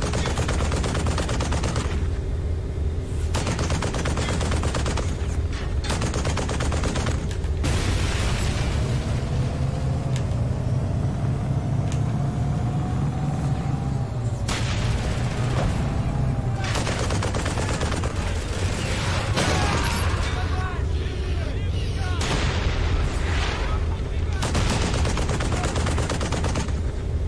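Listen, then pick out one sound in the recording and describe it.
A heavy tank engine rumbles steadily.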